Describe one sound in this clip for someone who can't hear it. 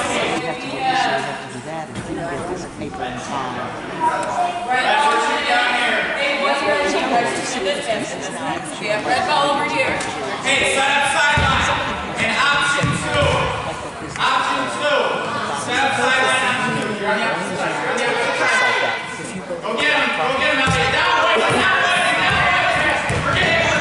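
Children shout and chatter in an echoing hall.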